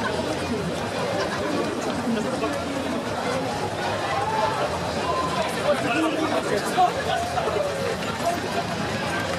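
Many running shoes patter on a paved street.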